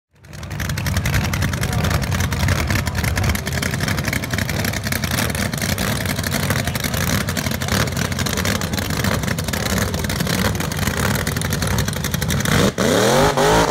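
A loud hot rod engine idles with a rough, throbbing rumble.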